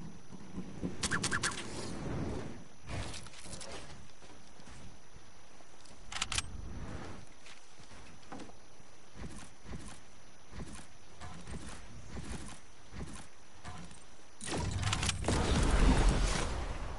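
Building pieces snap into place with quick clicks.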